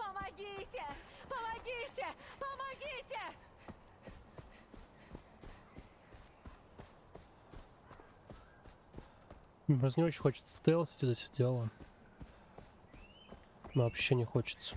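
Footsteps crunch steadily over grass and dirt.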